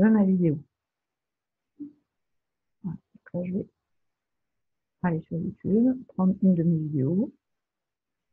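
A woman speaks calmly and closely into a microphone, in short bursts.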